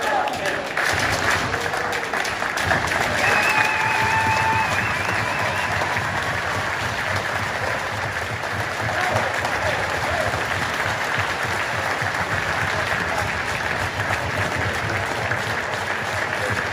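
A group of people clap their hands in steady applause.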